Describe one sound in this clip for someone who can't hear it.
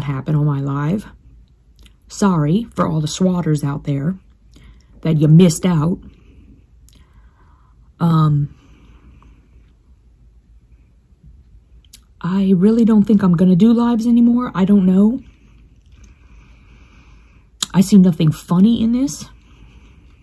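A woman speaks calmly and close up, in short bursts with pauses.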